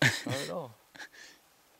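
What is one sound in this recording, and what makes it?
A young man speaks briefly and cheerfully close by.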